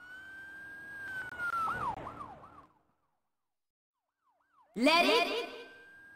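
Electronic game sound effects whoosh and chime.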